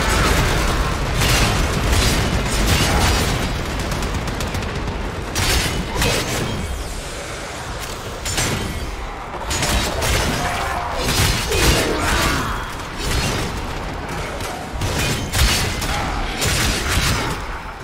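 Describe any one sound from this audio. Gunshots and blasts crack in rapid bursts.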